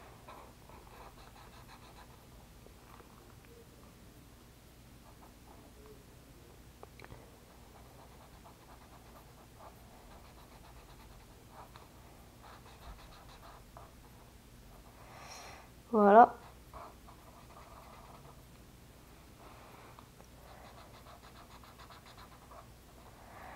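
A marker pen scratches softly on paper.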